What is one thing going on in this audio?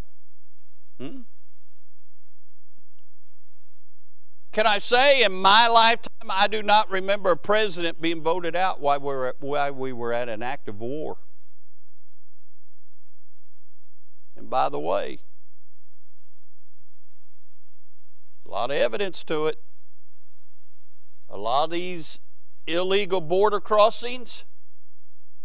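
A man preaches with animation through a microphone and loudspeakers, in bursts with pauses.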